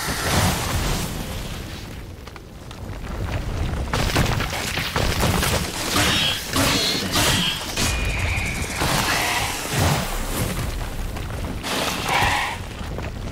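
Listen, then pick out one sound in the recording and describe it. Heavy thuds and blasts burst out in quick succession.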